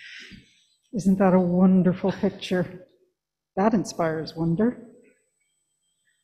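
An adult woman reads aloud calmly into a microphone, with pauses.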